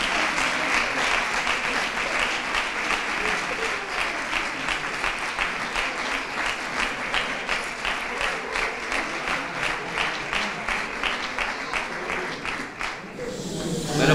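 A hand drum beats a steady rhythm.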